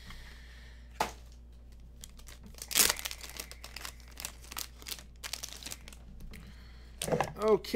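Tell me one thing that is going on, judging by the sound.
Plastic wrapping crinkles and rustles as hands tear it open.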